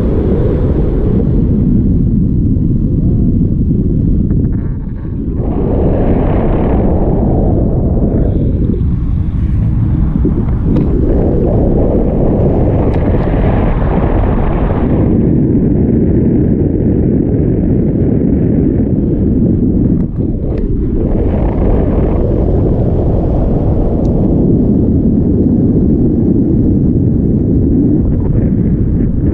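Strong wind rushes and buffets loudly past high in the open air.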